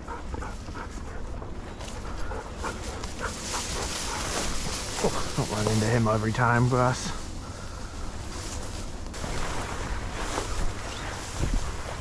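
Dry grass rustles and swishes underfoot as someone walks through it.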